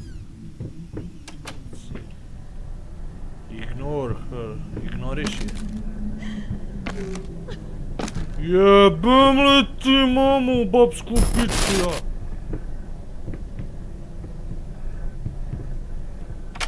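Footsteps creak on wooden floorboards.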